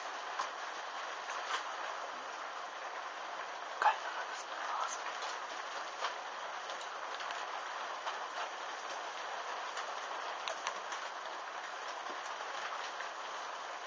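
Burning fabric crackles and pops.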